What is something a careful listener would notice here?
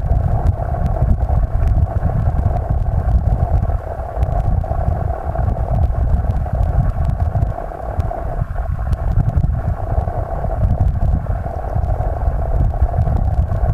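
Water rushes and gurgles steadily, heard from underwater.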